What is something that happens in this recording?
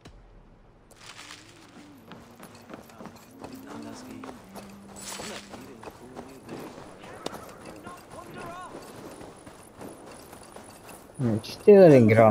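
Footsteps run on a dirt path.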